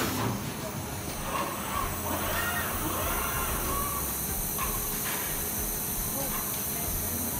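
Robotic arms whir and hum as they move.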